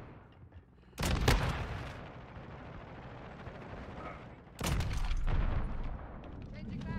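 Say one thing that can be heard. Loud rifle shots crack in short bursts.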